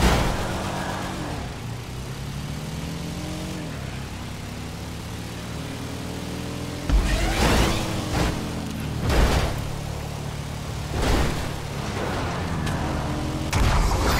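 A racing car engine revs and drones steadily, shifting pitch as it speeds up and slows.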